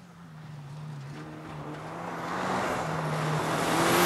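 Gravel crunches and sprays under a car's tyres.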